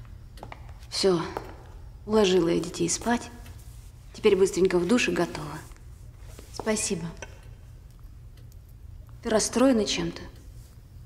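A young woman speaks tensely nearby, in short bursts.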